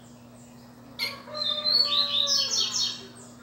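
A double-collared seedeater sings in bright, rapid phrases.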